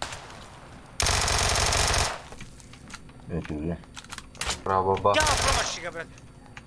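Rapid gunfire rattles in short loud bursts.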